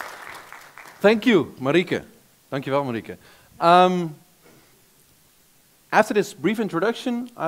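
A man speaks over a microphone in a large echoing hall.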